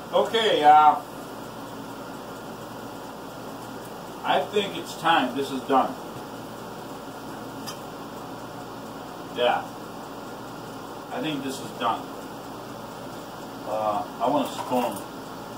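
A man speaks in short bursts nearby.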